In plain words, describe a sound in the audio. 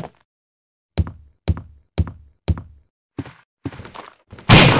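Footsteps tap quickly on a wooden floor.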